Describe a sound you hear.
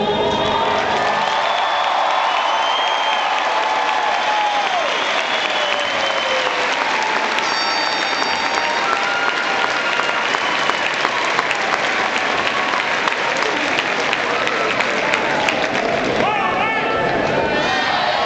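A large crowd applauds in a large echoing hall.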